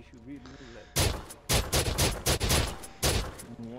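Gunshots fire in quick bursts, loud and echoing.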